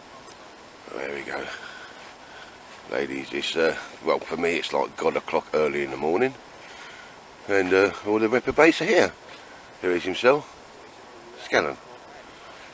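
Men talk with animation close by, outdoors.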